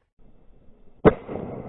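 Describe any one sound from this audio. A shotgun fires a single loud shot outdoors.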